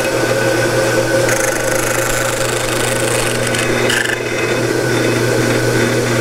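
A power saw blade spins with a steady hum and whine.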